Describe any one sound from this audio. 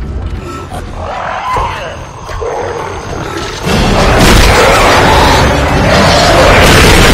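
A creature snarls and screeches nearby.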